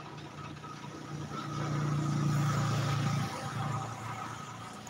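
A tractor engine rumbles nearby.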